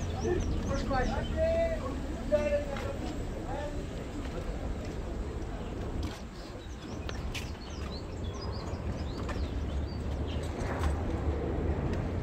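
Footsteps scuff on cobblestones.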